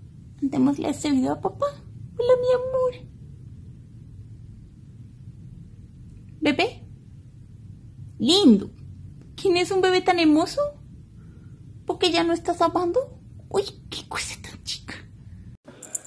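A kitten meows repeatedly close by.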